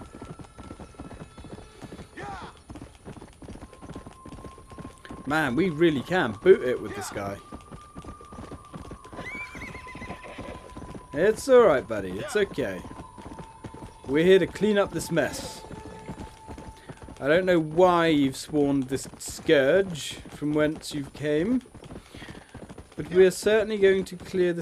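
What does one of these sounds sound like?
A horse gallops, hooves thudding steadily on a dirt track.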